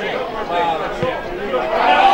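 A football is struck with a thud.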